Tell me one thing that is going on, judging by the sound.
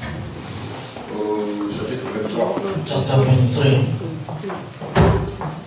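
A man speaks calmly into a microphone, heard through a loudspeaker in a hall.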